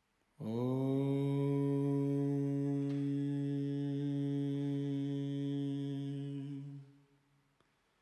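A harmonium plays a long, steady chord.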